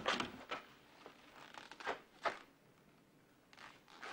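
A door handle clicks and a door creaks open.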